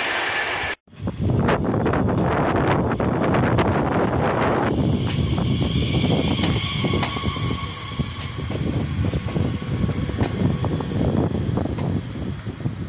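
An electric passenger train rolls in, wheels rumbling on the rails.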